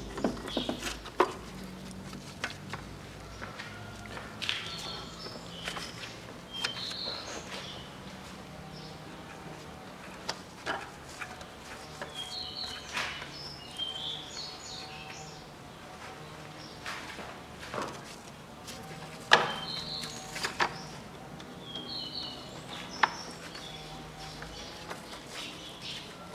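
A gloved hand knocks and clicks against metal engine parts.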